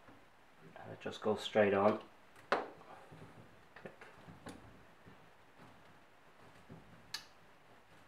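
Small metal parts click and tap as they are fitted together.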